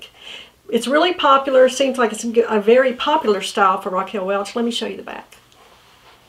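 A woman speaks calmly and warmly, close to a microphone.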